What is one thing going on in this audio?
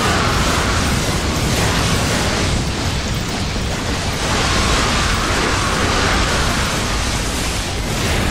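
Weapons slash and clang rapidly in a dense, noisy battle.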